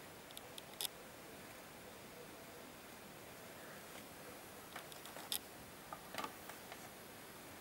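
A vinyl record crackles and pops softly as it spins.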